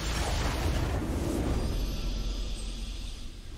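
A triumphant fanfare of music plays.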